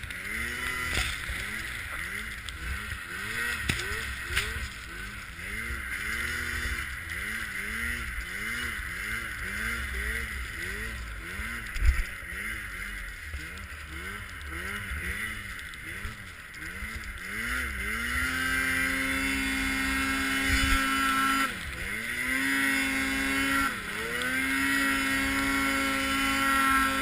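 A snowmobile engine drones close by, rising and falling in pitch, then revs to a high steady whine.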